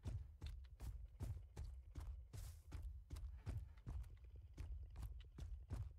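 Footsteps thud quickly and steadily on a hard floor.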